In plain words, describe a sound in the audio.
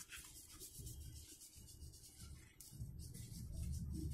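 A marker pen scratches on paper.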